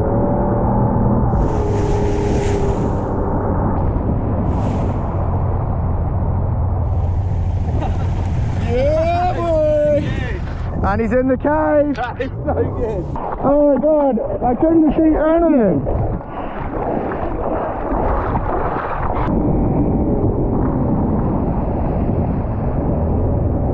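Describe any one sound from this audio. Water rushes and churns against a moving boat.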